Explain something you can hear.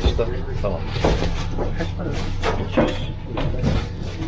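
Fish slap onto a metal tray.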